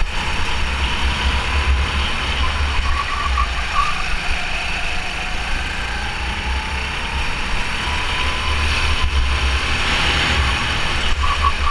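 A kart engine drones loudly up close, revving up and down.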